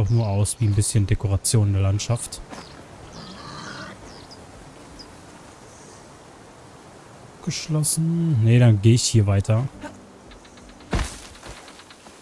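Footsteps crunch through dry undergrowth.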